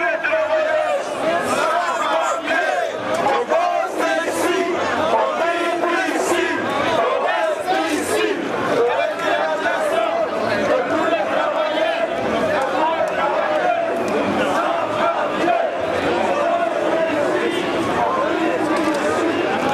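A large crowd of men and women chants and shouts together outdoors.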